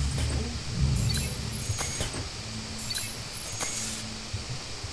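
Soft electronic swooshes and chimes sound.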